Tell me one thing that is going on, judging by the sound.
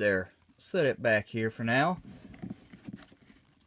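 A plastic card sleeve rustles and taps softly.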